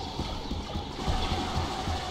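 Laser blasts zip past.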